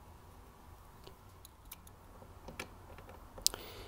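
A metal screwdriver tip clicks and scrapes against a metal screw.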